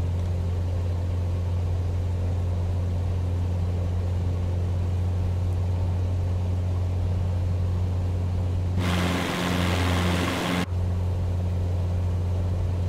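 A helicopter engine drones with a steady low hum.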